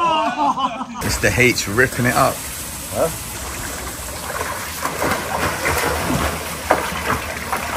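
Water splashes as a swimmer strokes through a pool.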